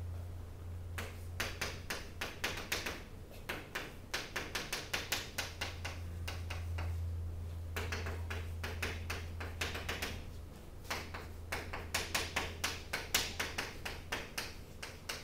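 Chalk taps and scratches quickly on a blackboard.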